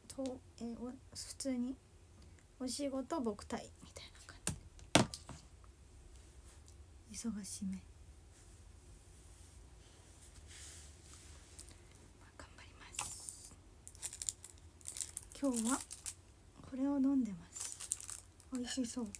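A young woman speaks softly and casually, close by.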